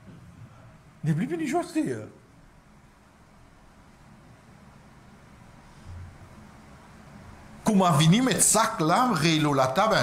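A man speaks calmly and close by, with pauses.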